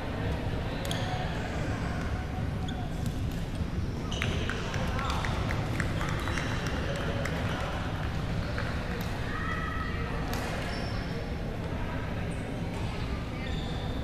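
Many people chatter in the background of a large echoing hall.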